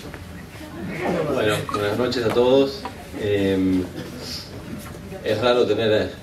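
A young man speaks through a microphone and loudspeakers in an echoing hall.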